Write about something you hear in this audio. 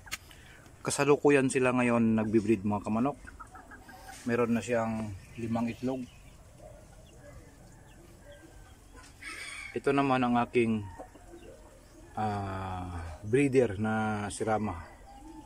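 Chickens cluck and call loudly nearby.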